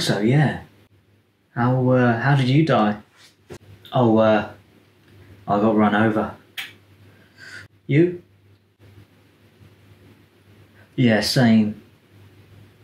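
A man speaks calmly in short bursts, close to the microphone.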